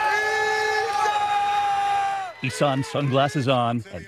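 A man shouts excitedly in a crowd.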